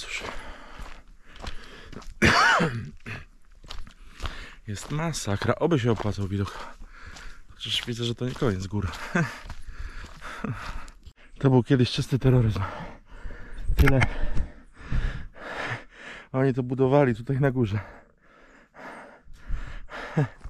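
A middle-aged man talks with animation close to the microphone.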